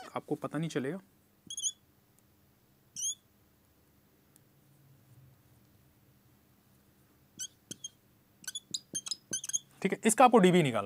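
A man speaks calmly nearby, as if explaining.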